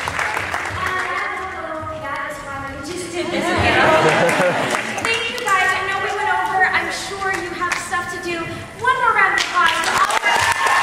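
A young woman speaks with animation through a microphone in a large hall.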